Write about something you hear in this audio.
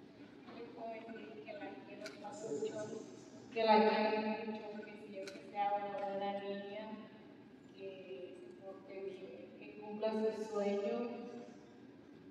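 A woman speaks with emotion through a microphone in a large echoing hall.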